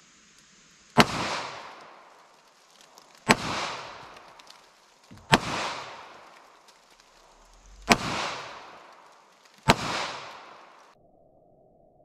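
A pistol fires single loud shots that ring out through the woods.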